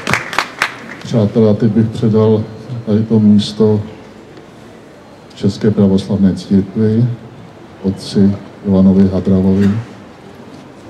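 An elderly man speaks loudly through a microphone and loudspeaker outdoors, with pauses.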